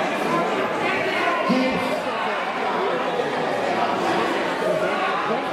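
A large crowd chatters and cheers loudly in an echoing hall.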